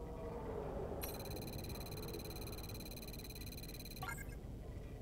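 A bright electronic tone hums steadily, then stops.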